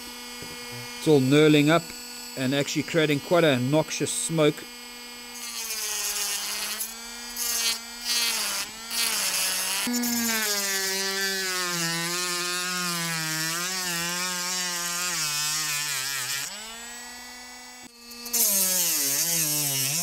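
A small rotary tool whines loudly, its pitch rising and falling as it runs.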